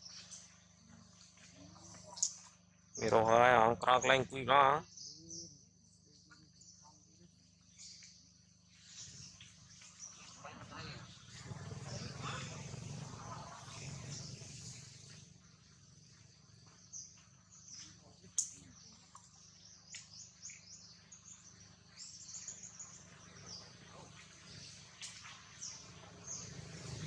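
Monkeys shift and rustle softly in dry leaves.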